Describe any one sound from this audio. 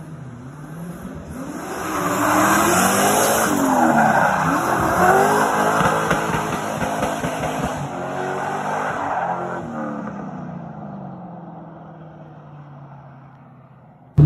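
A turbocharged V8 pickup truck revs hard while drifting, then fades into the distance.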